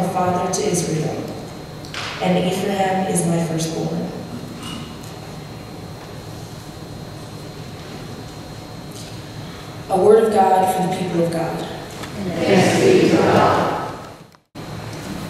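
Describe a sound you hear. A young woman reads aloud calmly into a microphone in a large echoing hall.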